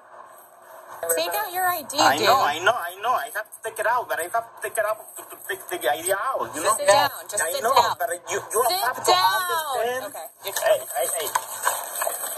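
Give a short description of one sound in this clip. A man answers quickly and pleads, close by.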